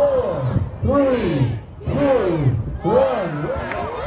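A crowd cheers and shouts with excitement outdoors.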